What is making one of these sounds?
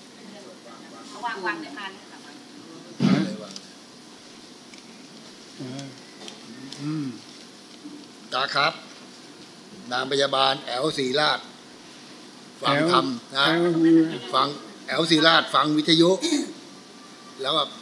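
An elderly man speaks slowly into a microphone, heard through a loudspeaker.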